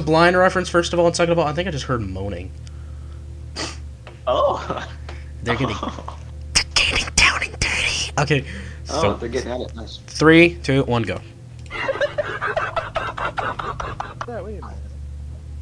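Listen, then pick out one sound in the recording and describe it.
Young men talk and laugh with animation over an online call.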